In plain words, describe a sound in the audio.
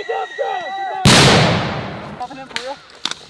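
A smoke grenade bursts with a loud hiss.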